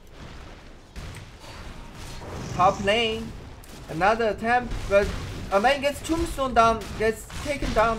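Fighting sound effects clash and crackle as a battle breaks out.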